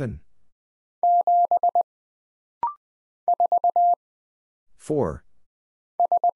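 A telegraph key taps out Morse code as quick, steady beeps in short bursts.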